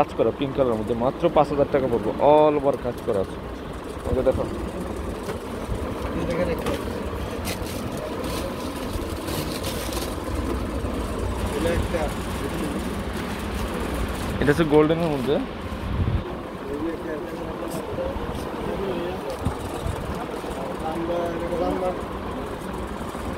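A man speaks nearby.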